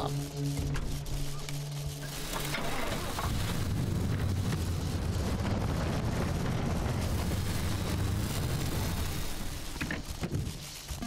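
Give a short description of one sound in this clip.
A car engine rumbles steadily as it drives.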